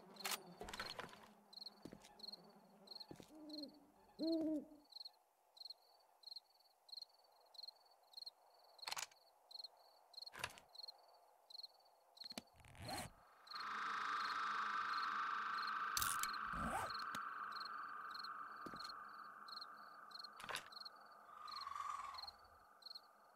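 Footsteps crunch steadily over the ground.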